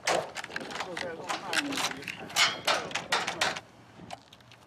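A door handle rattles and clicks.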